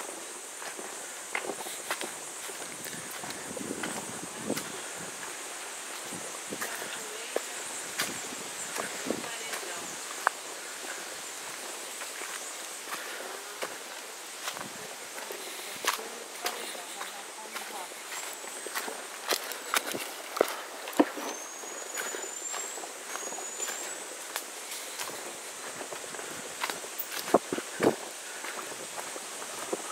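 Footsteps crunch on dry leaves and twigs outdoors.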